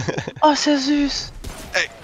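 A heavy metal weapon strikes with a clang.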